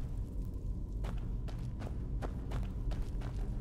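Footsteps tread on stone floor at a steady walking pace.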